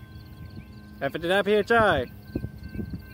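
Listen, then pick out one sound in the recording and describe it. A train horn blows loudly from a distance.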